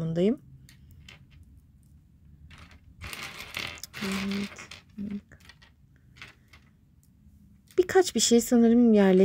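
Small plastic toy pieces click and clatter against each other.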